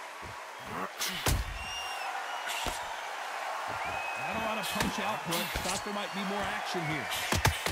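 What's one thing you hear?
Boxing gloves land with sharp thuds.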